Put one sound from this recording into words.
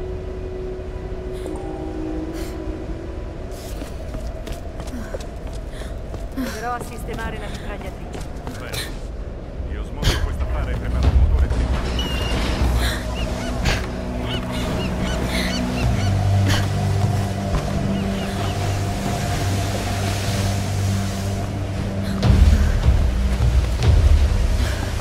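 Stormy sea waves crash and roar.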